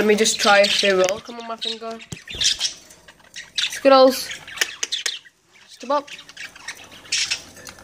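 Budgies chirp and warble up close.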